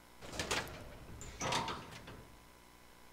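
A heavy metal door scrapes and creaks as it swings.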